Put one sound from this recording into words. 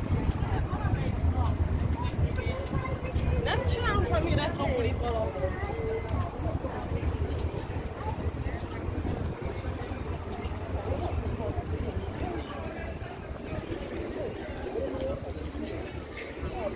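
Footsteps of passers-by tap on the pavement.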